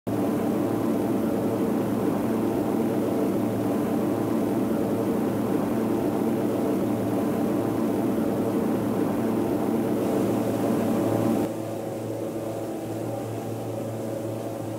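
Propeller engines of a large plane drone steadily, then sound more muffled.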